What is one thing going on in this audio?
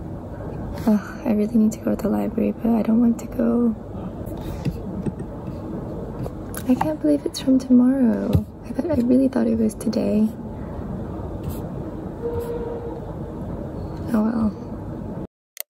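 A young woman speaks quietly and close to the microphone.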